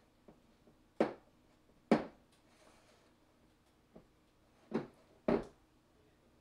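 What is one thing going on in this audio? Dough slaps and knocks on a counter.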